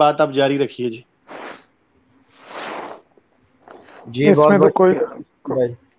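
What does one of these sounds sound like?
A man speaks calmly and closely into a microphone, with pauses and breaths between phrases.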